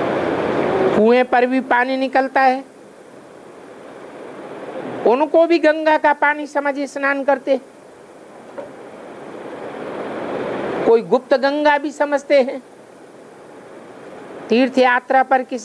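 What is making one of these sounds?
An elderly man recites in a slow, sing-song voice, in short phrases with pauses between them.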